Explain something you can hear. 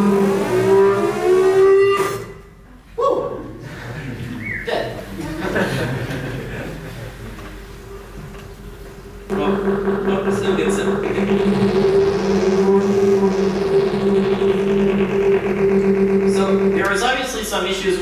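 Steady electronic tones play through loudspeakers in a large room.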